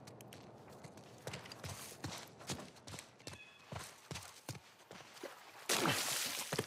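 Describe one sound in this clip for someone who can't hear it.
Footsteps crunch on leaves and pavement.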